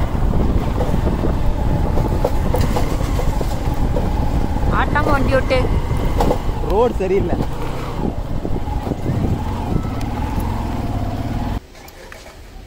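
A motorcycle engine hums as it rides along.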